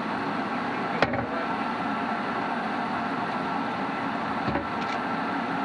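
A hatch latch clicks and clunks under a hand.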